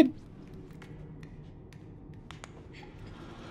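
Small footsteps patter on a hard floor.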